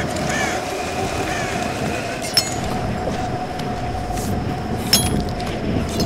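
A rope creaks and hums as someone slides down it.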